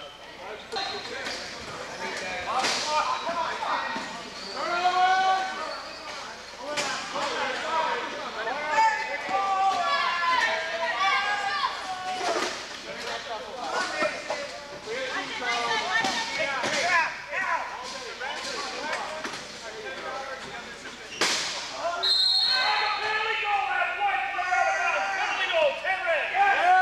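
Spectators talk and cheer in a large echoing gym.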